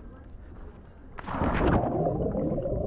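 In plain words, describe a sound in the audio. A man splashes into water.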